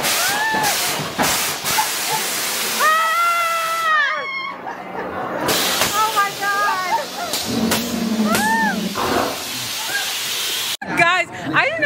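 A crowd screams and cheers loudly.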